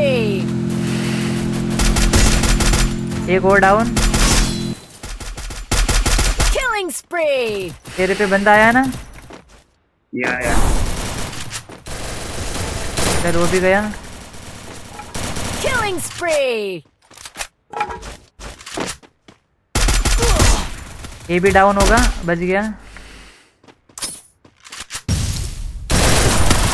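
Rapid gunfire crackles in short bursts.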